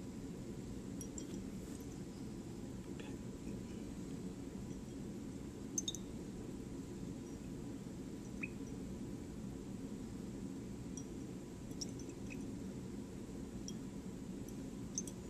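Glass clinks lightly now and then.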